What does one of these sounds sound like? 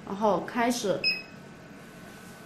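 An electronic device gives a short beep.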